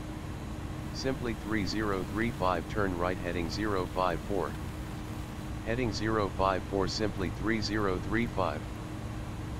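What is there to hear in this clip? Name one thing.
A man talks into a headset microphone in short bursts.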